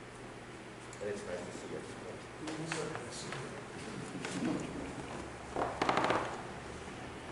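Objects are set down and handled close to a microphone.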